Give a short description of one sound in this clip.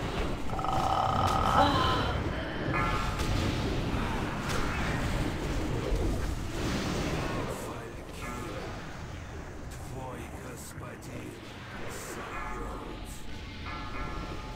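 Spell effects whoosh and crackle in a busy game battle.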